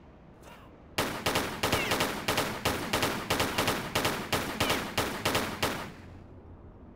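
Pistols fire in rapid, repeated shots.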